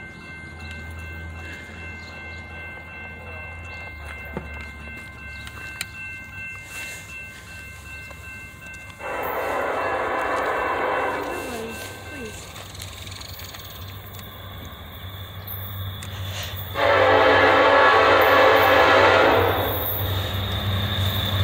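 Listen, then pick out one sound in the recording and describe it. A diesel train rumbles as it approaches.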